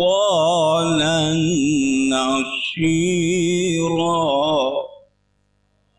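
An elderly man chants loudly through a microphone and loudspeakers.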